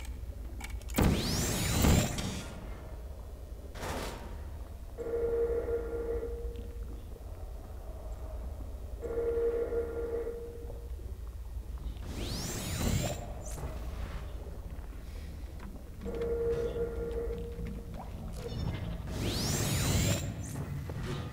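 A portal gun fires with a sharp, rising electronic whoosh.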